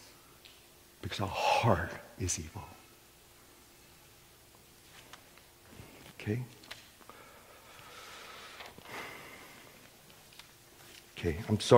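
A middle-aged man speaks calmly through a microphone in a large echoing hall.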